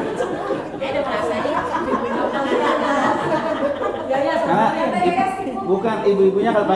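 A middle-aged man sings a melodic chant into a microphone, heard through a loudspeaker in an echoing room.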